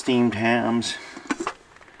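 A lid clinks on a metal pot.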